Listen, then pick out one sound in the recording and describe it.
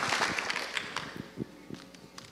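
An audience applauds in a large hall and the clapping fades away.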